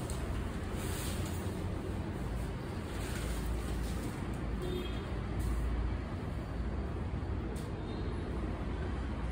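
Fabric rustles as a cloth is unfolded and shaken out.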